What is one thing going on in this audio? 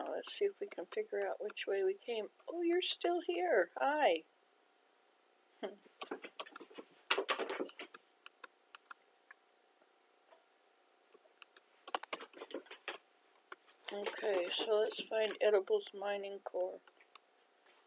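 An elderly woman talks calmly and close to a microphone, with pauses.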